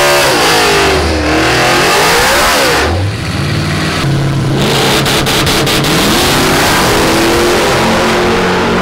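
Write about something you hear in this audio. A powerful car engine revs loudly, its roar rising and falling.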